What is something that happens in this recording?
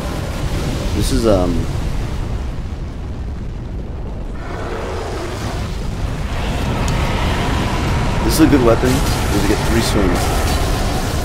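A dragon roars loudly with a harsh, falling cry.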